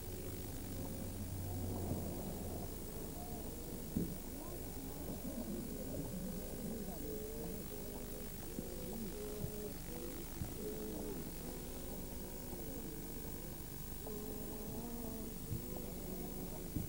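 Horse hooves clop on a paved road.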